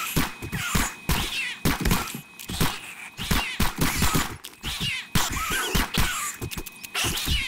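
A gun fires rapid, loud shots in bursts.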